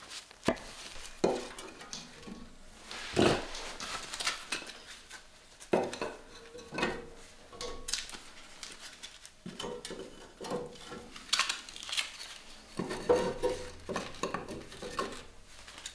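Wooden sticks knock and clatter inside a metal stove.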